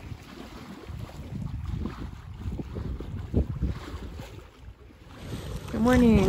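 Waves slosh against a moving boat.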